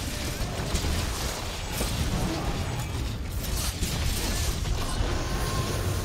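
A dragon roars and rumbles.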